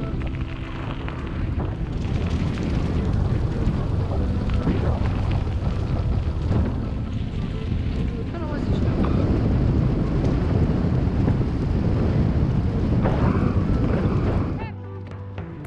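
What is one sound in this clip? Footsteps crunch quickly on a gravel path.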